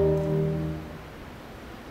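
A concert band holds a final chord that dies away in a large echoing hall.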